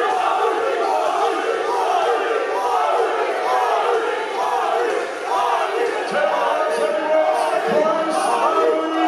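A crowd of men chatters and jeers in the background.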